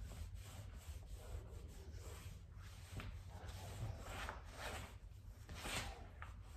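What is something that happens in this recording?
A cloth rubs and scrubs along a baseboard.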